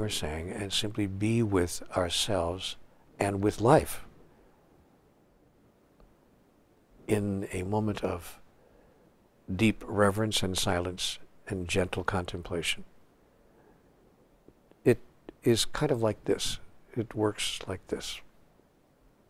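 An elderly man speaks calmly and thoughtfully into a close microphone, with pauses.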